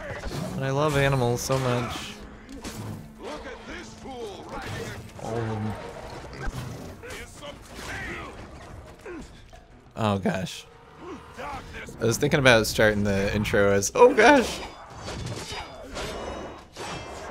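Swords clash and slash in a fierce fight.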